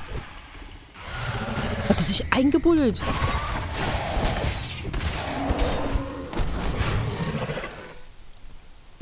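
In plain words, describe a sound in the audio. Blades clash and hit a beast in a fight.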